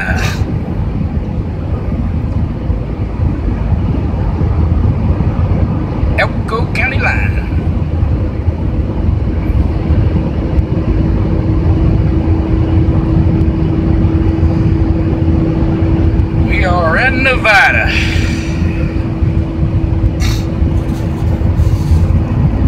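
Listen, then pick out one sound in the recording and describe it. Tyres rumble steadily on a highway.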